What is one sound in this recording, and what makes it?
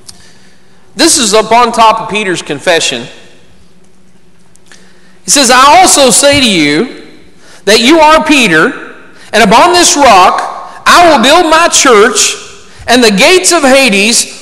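A middle-aged man reads aloud into a microphone, in a room with some echo.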